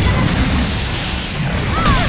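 Lightning crashes with a loud bang.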